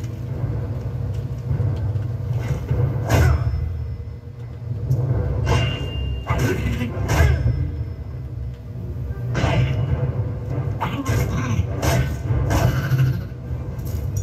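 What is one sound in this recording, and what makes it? Blades clang and thud in a fast fight.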